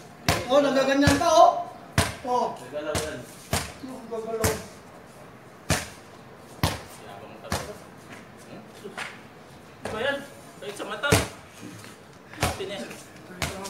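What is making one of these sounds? A basketball bounces on a hard outdoor court with sharp thuds.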